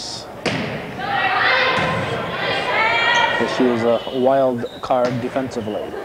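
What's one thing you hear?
A volleyball is struck with a sharp smack in an echoing gym.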